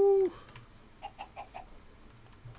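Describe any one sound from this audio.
Sheep bleat nearby.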